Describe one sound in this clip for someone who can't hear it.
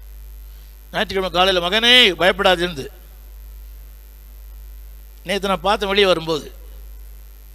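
An elderly man speaks with feeling into a microphone over a loudspeaker system, in short bursts with pauses.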